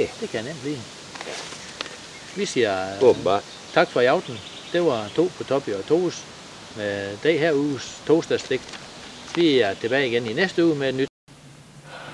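A middle-aged man speaks calmly, close by, outdoors.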